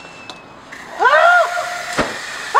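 A young woman screams loudly.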